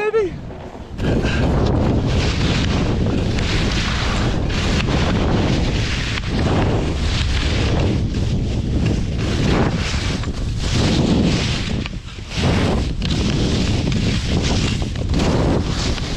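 Skis carve and scrape across packed snow.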